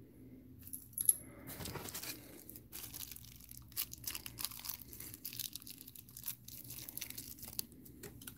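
Small trinkets in plastic bags rustle and clink as a hand sorts through them.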